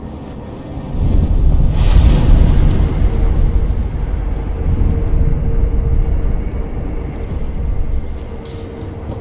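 A deep, shimmering magical whoosh swells up and slowly fades.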